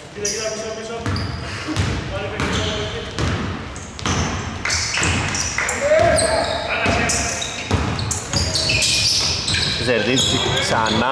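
A basketball bounces with dull thuds on a wooden floor.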